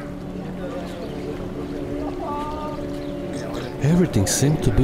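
A small boat motor hums steadily close by.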